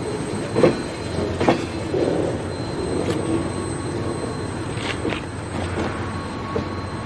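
A freight train rumbles slowly past on the tracks.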